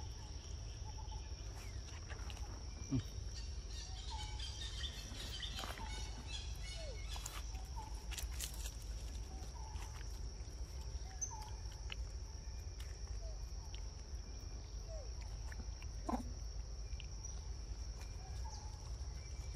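A monkey chews soft fruit with wet smacking sounds.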